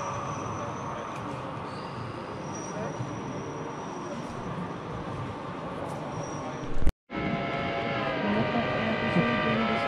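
A model train rolls along its track with a soft whirring hum.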